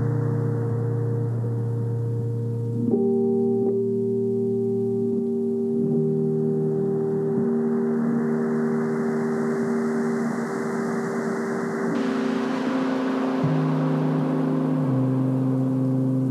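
Electronic game music plays with steady sustained tones.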